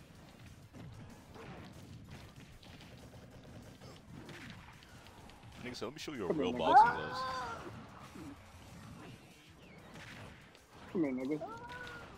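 Punches, blasts and impacts thud and crackle in a fighting game.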